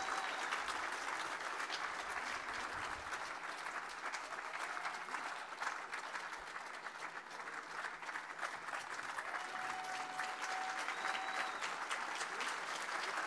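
A crowd applauds steadily outdoors.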